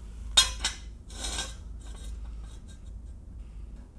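A metal jack stand clanks and ratchets as it is set under a car.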